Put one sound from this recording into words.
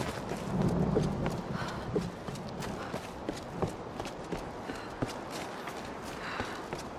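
Footsteps tread on stone and dirt at a steady walking pace.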